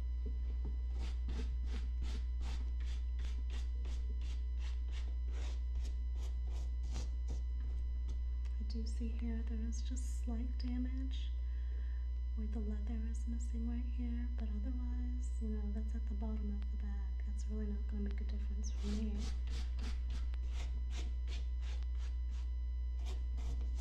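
A brush scrubs fabric in quick, even strokes.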